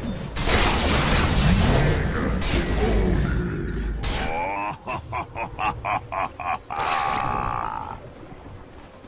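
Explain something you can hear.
Loud magical blasts and crashing impacts burst during a fast fight.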